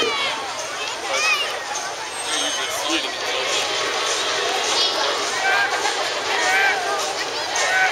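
A crowd chatters and shouts loudly outdoors.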